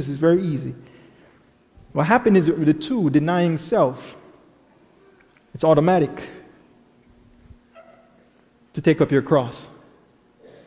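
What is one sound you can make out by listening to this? A young man preaches with animation through a microphone in an echoing hall.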